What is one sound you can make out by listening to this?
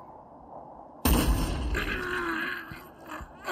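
A gunshot blasts loudly, followed by crackling noise.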